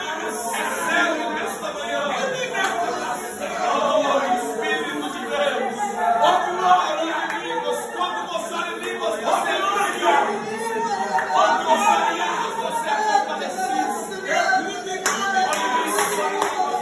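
A group of men and women pray aloud together, their voices overlapping in a small room.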